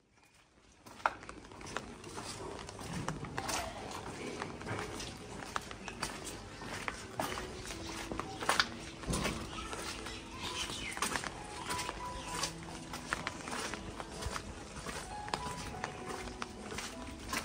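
Footsteps tap on a brick path.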